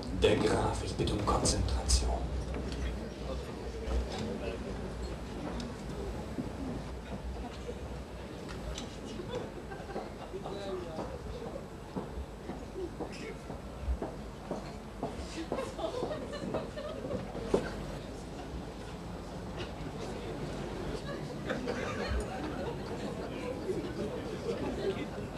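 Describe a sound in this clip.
A man speaks to an audience.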